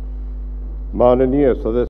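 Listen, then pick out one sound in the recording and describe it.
An elderly man speaks slowly into a microphone in a large hall.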